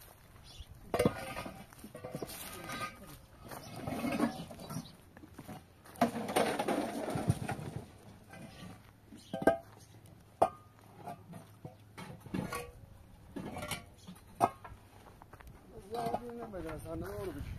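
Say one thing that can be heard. Concrete blocks knock and scrape against each other as they are stacked.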